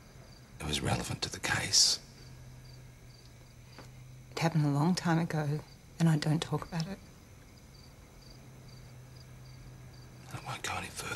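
A man speaks quietly and gravely.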